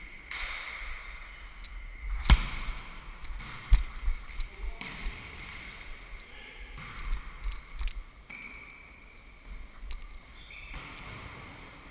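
Sneakers squeak and thud on a hard floor.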